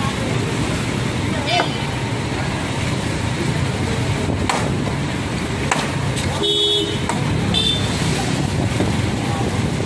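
Wooden boards clatter as they are thrown onto a truck.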